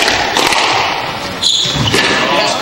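A squash ball smacks hard against the walls of an echoing court.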